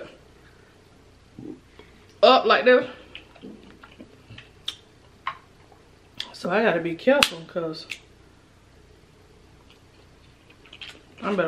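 A woman smacks and chews food close to a microphone.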